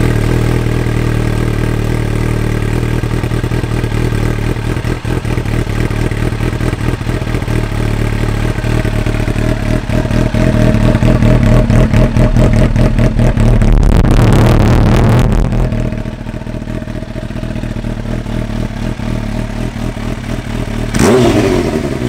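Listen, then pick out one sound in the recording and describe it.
A motorcycle engine idles with a deep, loud, rumbling burble close by.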